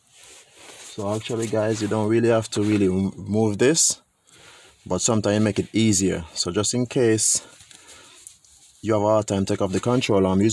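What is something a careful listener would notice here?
A man explains calmly, close to the microphone.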